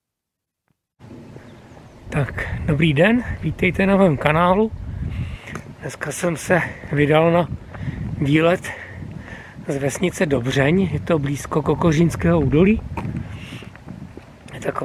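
A middle-aged man talks calmly and with animation close to the microphone.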